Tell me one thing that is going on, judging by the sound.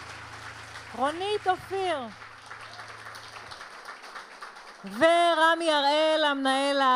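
A woman sings loudly through a microphone.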